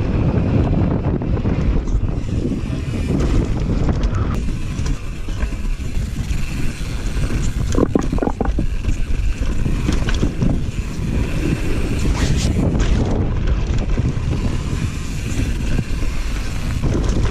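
Wind rushes loudly past a bicycle rider moving fast outdoors.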